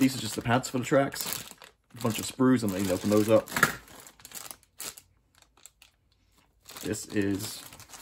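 Plastic packaging crinkles as it is handled.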